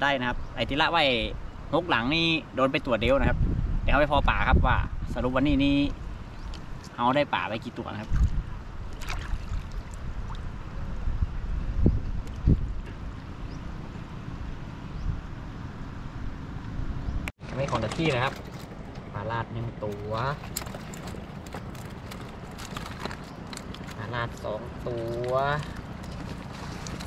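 A young man talks animatedly close to the microphone.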